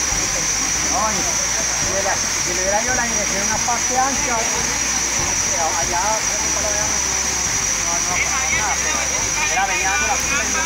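A crowd of men and women shout and call out together outdoors.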